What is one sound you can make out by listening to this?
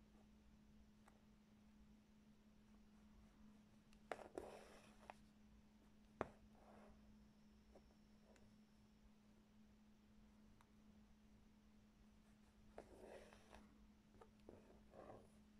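A needle pokes through taut fabric with soft ticks.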